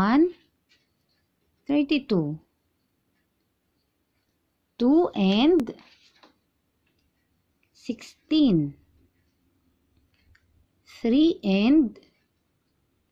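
A woman speaks calmly and clearly through a microphone, in short phrases with pauses.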